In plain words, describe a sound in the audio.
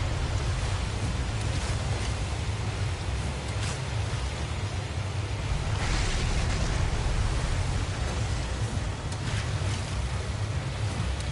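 Choppy water laps and splashes around a small boat.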